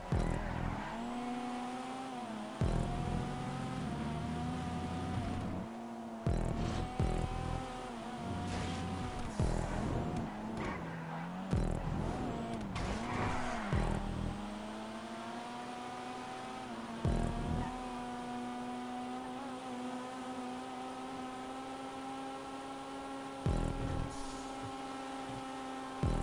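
A car engine revs high and shifts through gears as a sports car races.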